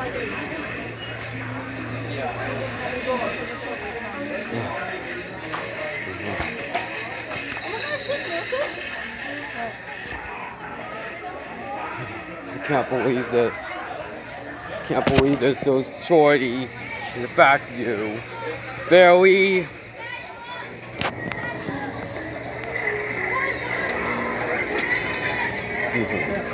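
People chatter indistinctly in a busy indoor space.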